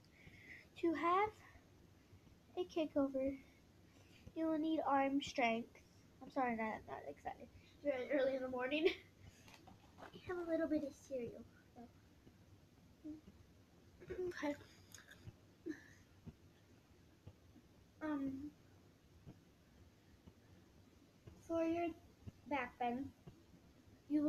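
A young girl talks close by in short, lively bursts.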